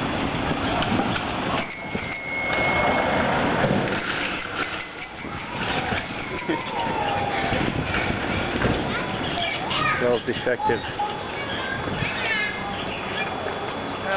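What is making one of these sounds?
Wind rushes past while riding a bicycle down a street outdoors.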